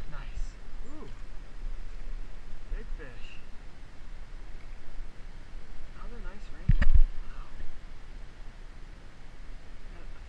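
A shallow stream flows and burbles over rocks.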